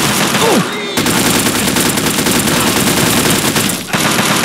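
An automatic rifle fires rapidly.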